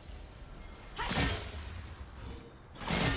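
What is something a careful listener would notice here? Magic blasts crackle and whoosh in a video game fight.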